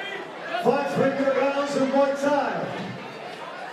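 A crowd cheers and shouts loudly, then quiets down.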